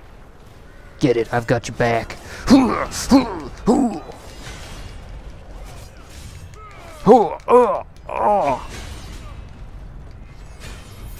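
Metal blades clash and slash in a fight.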